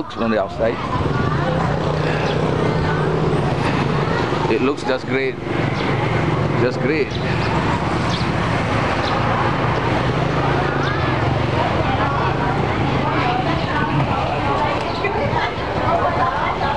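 A motorbike engine idles nearby.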